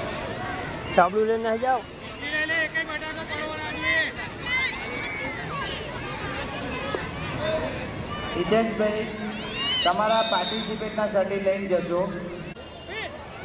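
A young girl shouts loudly nearby.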